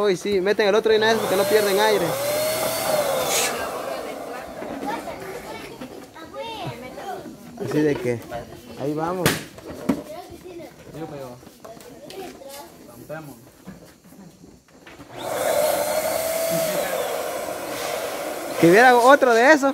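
An electric balloon pump whirs in short bursts.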